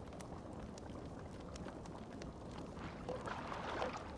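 A fire crackles softly.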